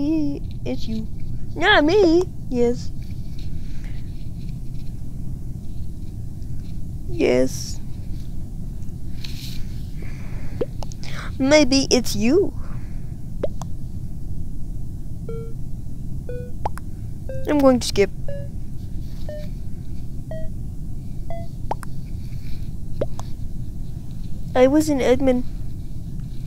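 A game chimes softly as new chat messages pop up.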